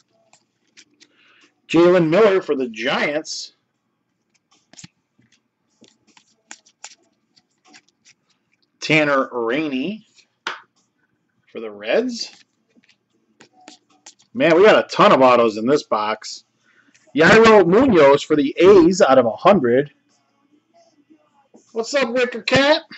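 Stiff cards rustle and slide against each other in hands.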